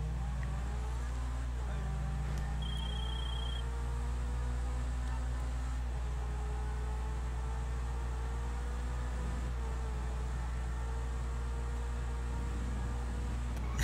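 A sports car engine roars steadily at speed.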